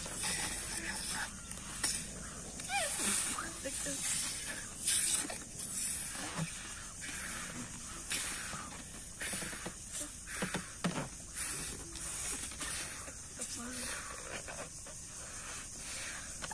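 Balloon rubber squeaks and rubs under children's fingers.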